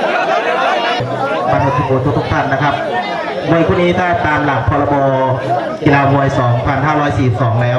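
A man speaks loudly into a microphone, heard over loudspeakers.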